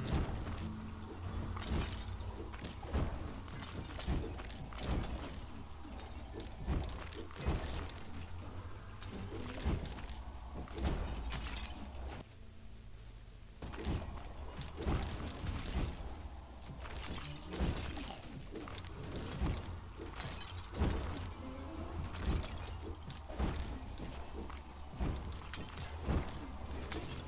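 Swords swish and magic blasts hit in quick, repeated bursts.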